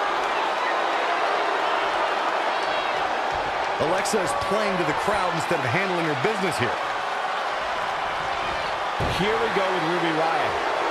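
A large crowd murmurs and cheers steadily in a big arena.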